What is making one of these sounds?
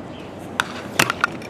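A baseball pops into a catcher's leather mitt.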